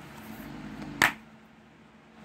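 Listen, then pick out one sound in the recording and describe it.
A plastic disc case snaps open.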